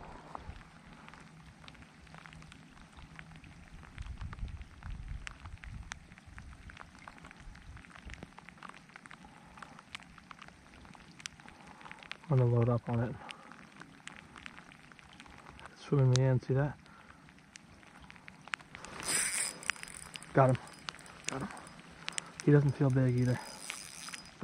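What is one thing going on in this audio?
Rain patters lightly on water outdoors.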